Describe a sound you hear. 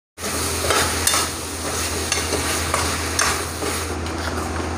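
A metal spatula scrapes and clatters against a pan.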